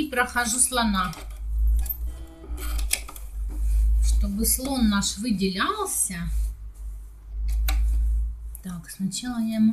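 A sewing machine whirs and stitches in bursts.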